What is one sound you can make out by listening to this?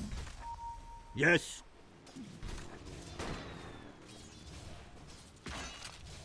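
Game fighting sounds clash and whoosh as spells hit.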